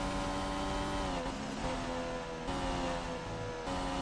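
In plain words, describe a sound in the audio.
A racing car engine drops in pitch as the car brakes and shifts down.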